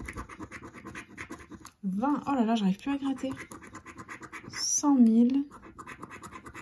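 A coin scratches rapidly across a paper card.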